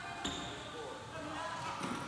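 A woman jumps onto a wooden box with a dull thud.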